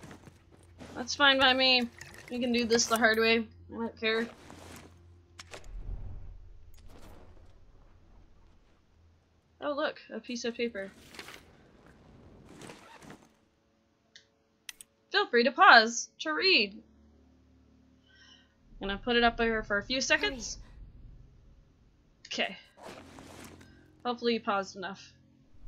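A young woman talks with animation close to a headset microphone.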